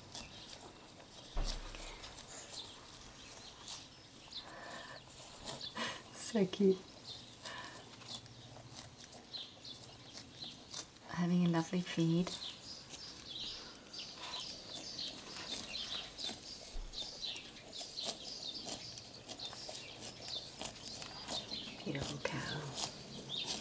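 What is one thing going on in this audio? A cow tears and munches grass close by.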